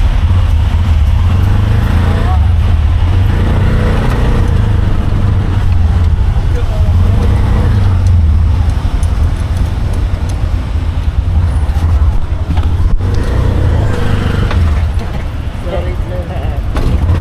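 A small motor engine rumbles steadily.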